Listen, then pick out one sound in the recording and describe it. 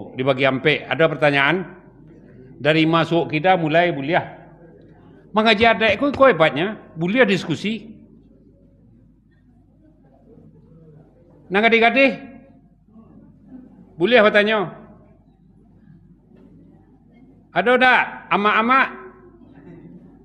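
An elderly man preaches loudly and forcefully through a microphone, with pauses between phrases, in an echoing hall.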